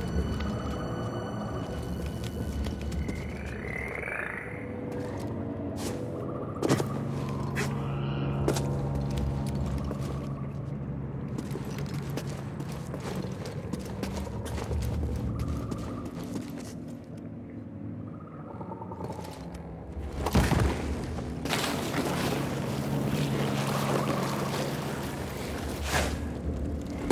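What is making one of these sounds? Footsteps scuff and thud on rock.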